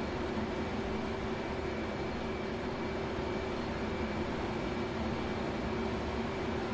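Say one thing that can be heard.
A jet engine hums steadily inside a cockpit.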